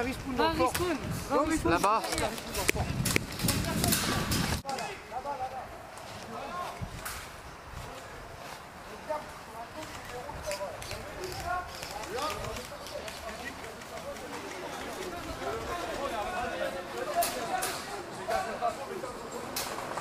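Paintball markers fire in quick bursts of sharp pops.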